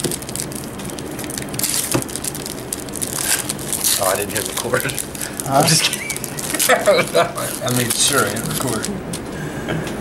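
Foil card packs crinkle as hands tear them open.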